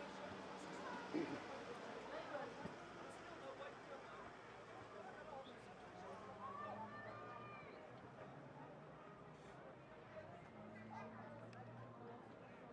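Players shout across an open field.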